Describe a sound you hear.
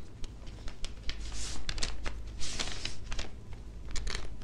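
Paper pages rustle as a book is opened and leafed through.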